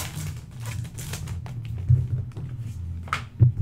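Foil wrappers crinkle and rustle close by.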